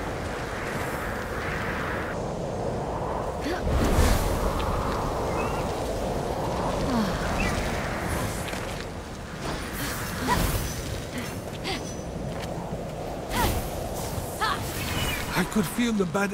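Wind howls steadily in a snowstorm.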